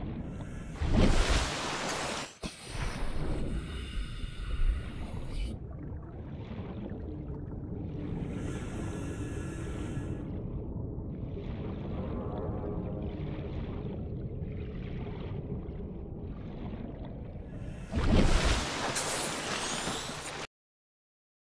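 Water splashes loudly as a swimmer breaks the surface.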